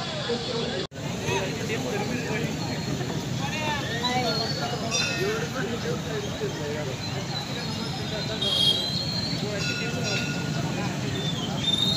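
A crowd of people chatters at a distance.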